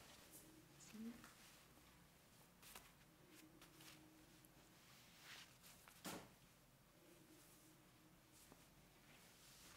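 Clothing rustles close to a microphone.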